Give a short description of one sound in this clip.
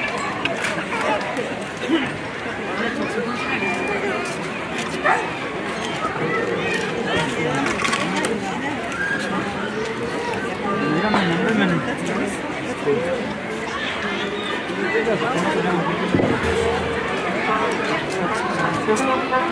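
A crowd of men and women chatter all around outdoors.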